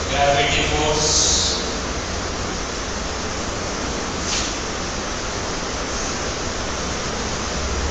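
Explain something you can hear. A board eraser rubs and squeaks across a whiteboard.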